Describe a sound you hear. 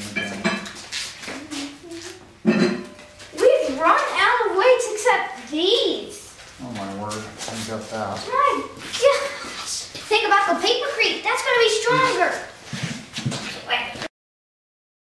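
Children talk and shout excitedly nearby.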